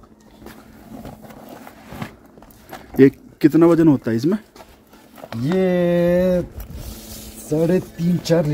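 Fabric rustles as a car seat is moved.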